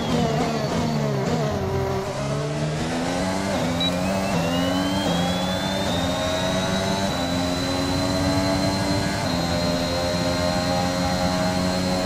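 A racing car engine drops in pitch then revs up rising through the gears with short breaks at each shift.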